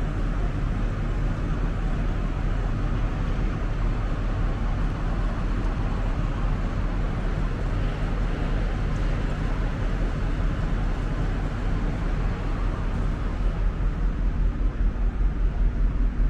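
A large ship's engines hum with a steady low drone nearby.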